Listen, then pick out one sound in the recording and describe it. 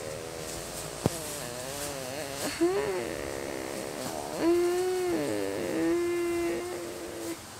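A boy speaks close to a microphone in a high, drawn-out, sing-song voice.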